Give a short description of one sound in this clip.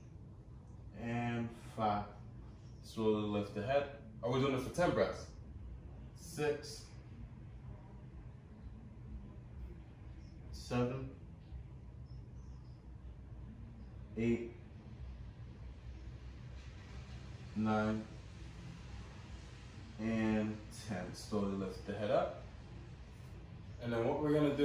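A man speaks calmly and slowly, with long pauses.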